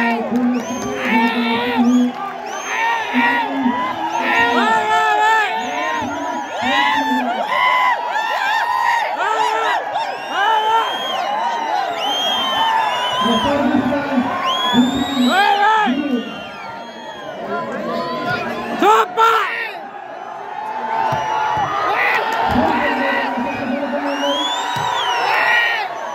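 A large outdoor crowd chatters and cheers loudly.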